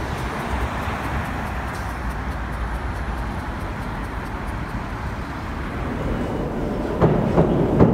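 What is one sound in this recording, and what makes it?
City traffic hums along a street outdoors.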